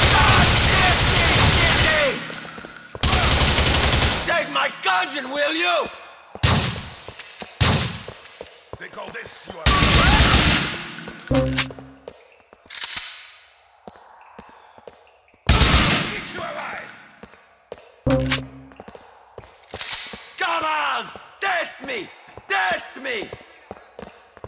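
Rifle shots fire in loud bursts that echo.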